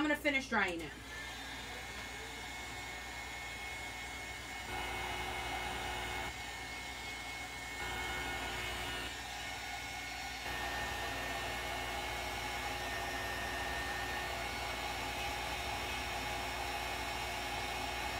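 A heat tool whirs steadily.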